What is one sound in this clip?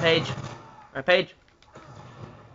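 A video game explosion booms through a television speaker.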